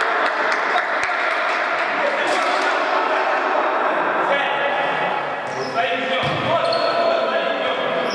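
A ball is kicked with a hollow thump in a large echoing hall.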